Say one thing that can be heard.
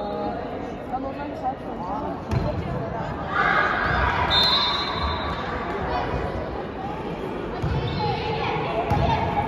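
Young girls call out and shout in a large echoing hall.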